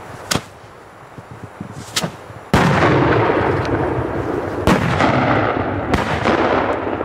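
Firecrackers bang sharply outdoors, one after another.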